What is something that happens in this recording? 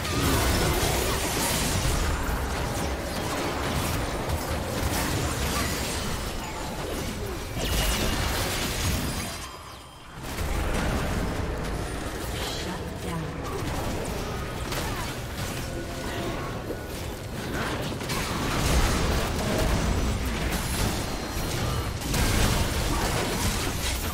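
Game spell effects whoosh, crackle and burst during a fight.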